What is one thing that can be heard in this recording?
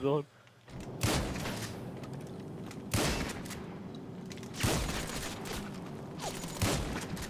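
A pistol fires single shots with sharp cracks.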